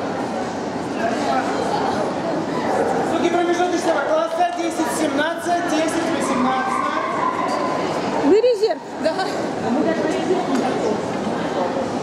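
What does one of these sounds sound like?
Several people talk nearby with animation.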